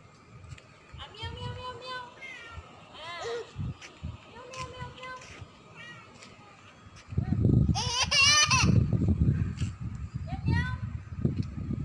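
A young girl squeals and babbles nearby.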